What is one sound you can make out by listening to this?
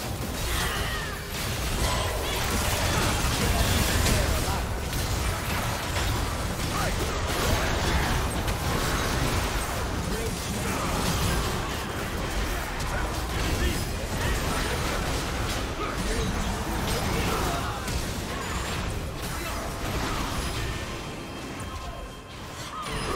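Magic blasts and crackling spell effects burst rapidly during a chaotic fight.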